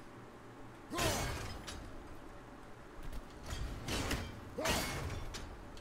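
An axe whooshes through the air and strikes with a heavy thud.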